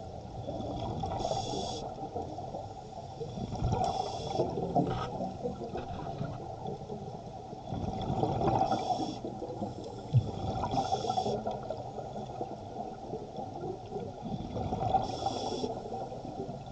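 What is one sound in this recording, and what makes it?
Air bubbles gurgle and hiss in bursts underwater.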